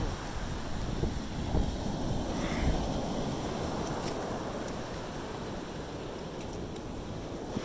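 Waves wash onto the shore nearby.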